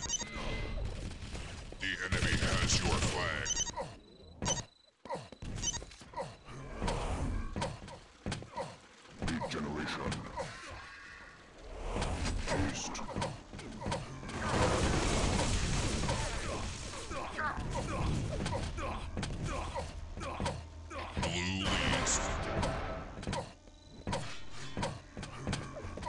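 Rapid footsteps patter as a figure runs.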